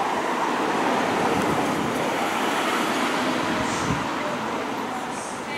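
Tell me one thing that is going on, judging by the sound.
A car drives past close by and fades away.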